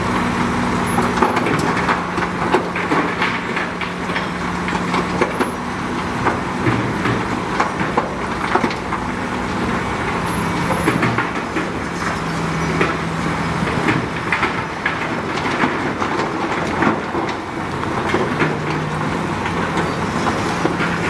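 Rocks and gravel crunch and clatter under a bulldozer blade.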